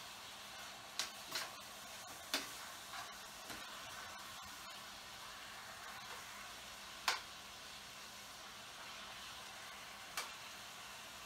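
A spoon clinks against a frying pan.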